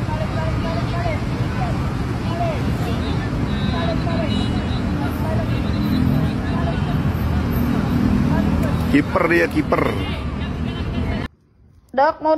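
Children shout and chatter outdoors.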